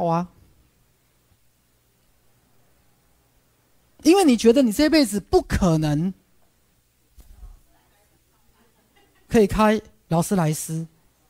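A man speaks with animation through a microphone, in bursts with pauses.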